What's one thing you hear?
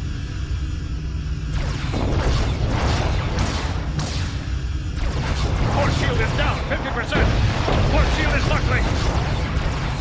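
Deep rumbling explosions boom.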